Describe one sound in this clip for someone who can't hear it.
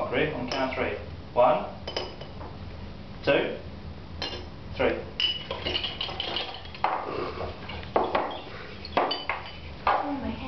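Glass flasks clink against a table.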